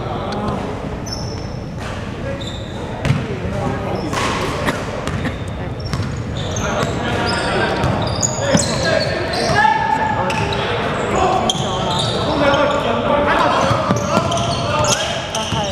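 Sneakers squeak on a hardwood court in an echoing gym.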